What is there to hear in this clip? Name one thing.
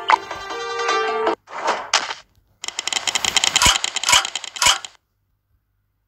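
Game music plays with a short jingle.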